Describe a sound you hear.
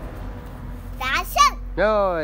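A young child squeals and babbles excitedly close by.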